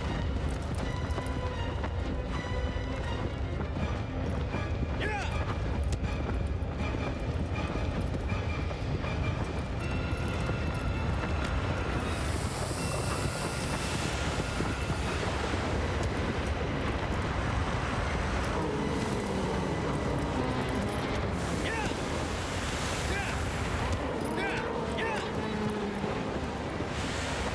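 A horse gallops with fast, heavy hoofbeats on sand.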